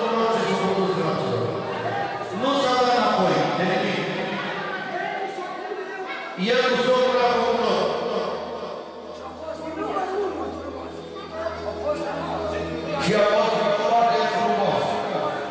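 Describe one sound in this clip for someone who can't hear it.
A man sings loudly into a microphone, heard through loudspeakers in an echoing hall.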